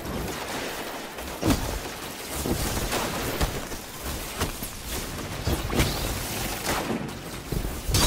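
Gunshots crack repeatedly.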